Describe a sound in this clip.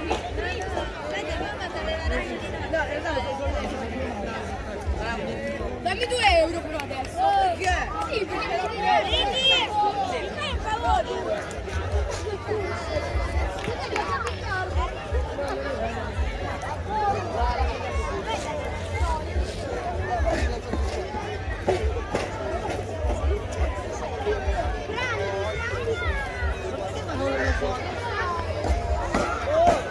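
A large crowd of adults and children chatters outdoors.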